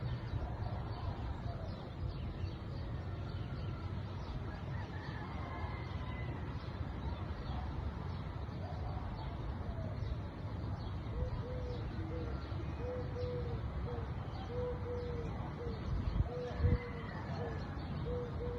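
A hummingbird's wings hum steadily as it hovers close by.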